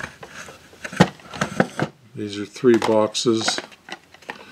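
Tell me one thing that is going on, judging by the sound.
A small cardboard box taps and rustles as it is handled.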